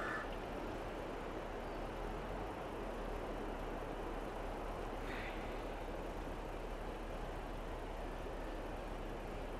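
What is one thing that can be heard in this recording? A heavy diesel loader engine rumbles steadily.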